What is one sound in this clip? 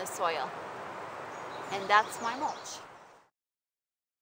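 A woman speaks calmly and clearly close by, outdoors.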